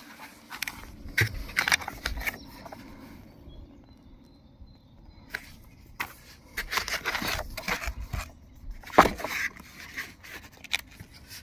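Paper booklets rustle and flap as hands pick them up.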